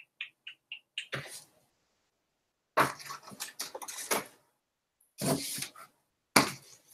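Books rustle and thump in a cardboard box.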